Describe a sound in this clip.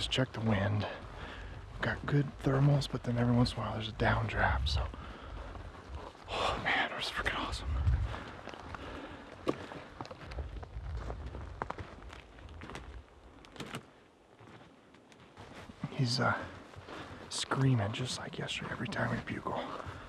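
Footsteps crunch on dry ground and twigs.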